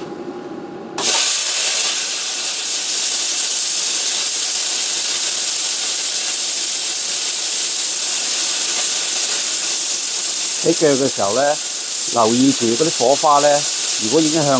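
A plasma torch hisses loudly and steadily as it cuts through metal.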